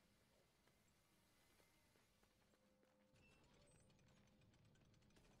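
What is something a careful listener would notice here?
A magical spark crackles and fizzes.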